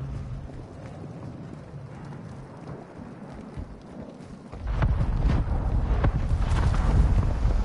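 Footsteps crunch on sand and gravel.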